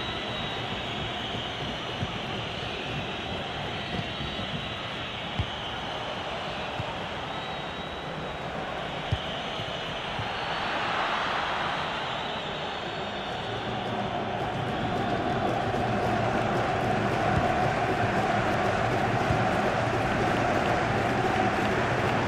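A stadium crowd roars and murmurs steadily, growing louder.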